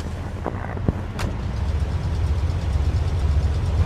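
A car engine revs as the car pulls away.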